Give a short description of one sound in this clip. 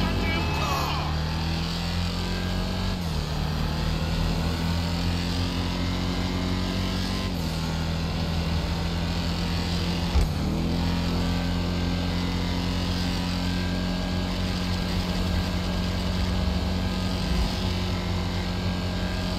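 A car engine roars steadily at high speed, shifting gears now and then.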